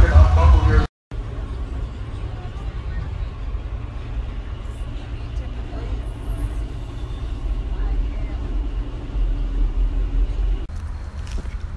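A vehicle rumbles low and steadily.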